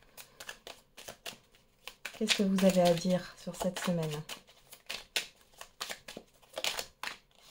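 Playing cards riffle and flick as they are shuffled by hand.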